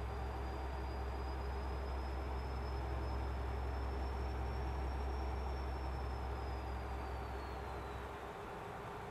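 A truck engine drones low and steadily, then drops away.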